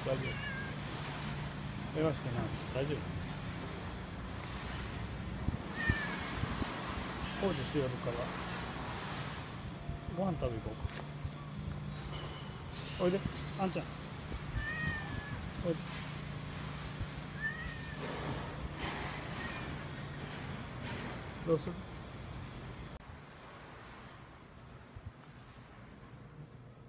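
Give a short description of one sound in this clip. A cat meows repeatedly nearby.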